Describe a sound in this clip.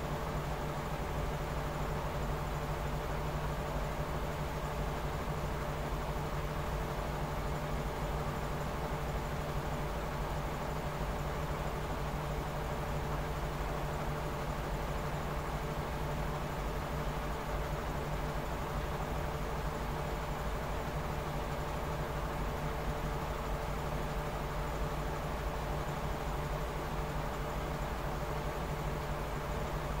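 A front-loading washing machine runs with a steady hum.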